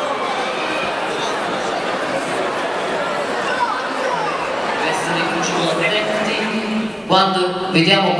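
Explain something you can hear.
A large crowd chatters in an echoing hall.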